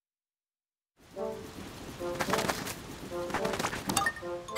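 Game music plays with bright melodic notes.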